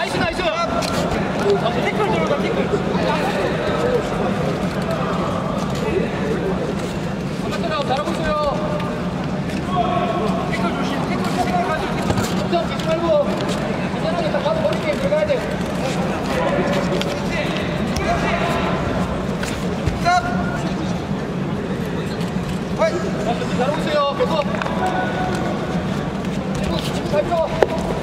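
A crowd murmurs and shouts throughout a large echoing hall.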